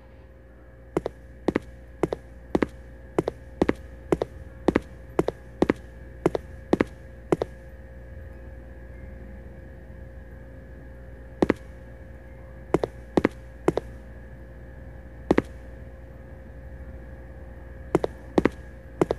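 Footsteps tread at a steady pace on a hard floor, pausing now and then.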